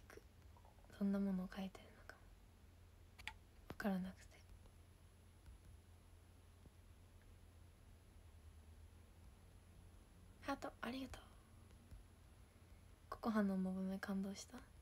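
A young woman speaks softly and casually close to a microphone, in short bursts with pauses.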